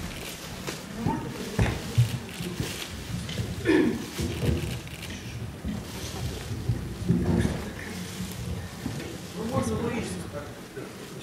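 A microphone stand is moved and adjusted close to a microphone, with loud thumps and knocks.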